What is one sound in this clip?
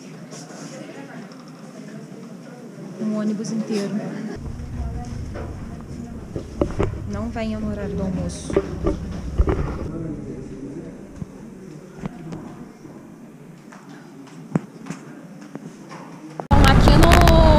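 A woman speaks close by, calmly.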